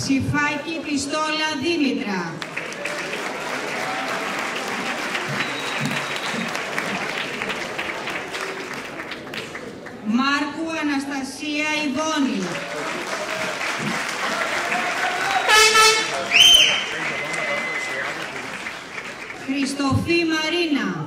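A woman chants loudly through a microphone in an echoing hall.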